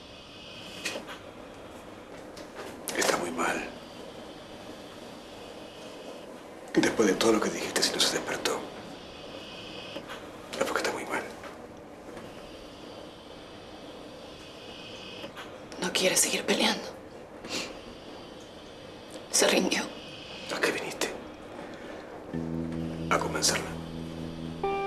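A young woman speaks quietly, close by.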